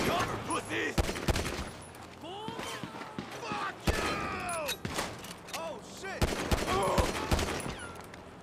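A pistol fires several sharp shots close by.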